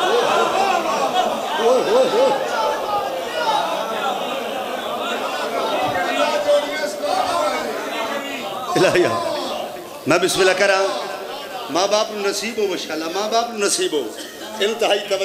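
A man chants loudly through a microphone over loudspeakers in a hall.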